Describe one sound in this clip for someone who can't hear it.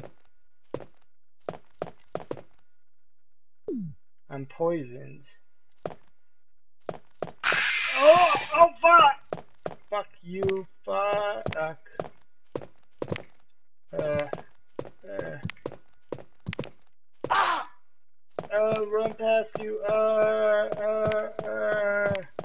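Footsteps knock on a wooden floor at a steady pace.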